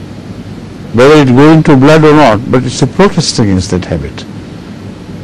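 An elderly man speaks calmly.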